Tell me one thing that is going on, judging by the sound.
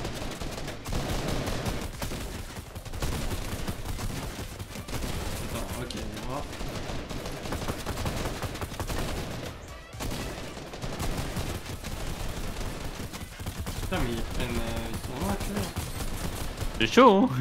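Rapid gunfire crackles in a video game.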